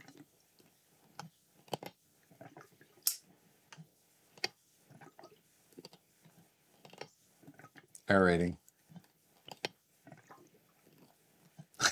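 Glass clinks softly as a tube is moved in a jug.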